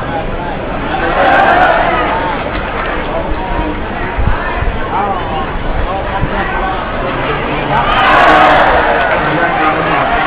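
A crowd cheers loudly in short bursts.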